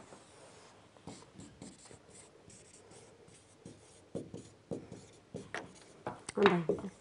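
A marker squeaks faintly on a whiteboard.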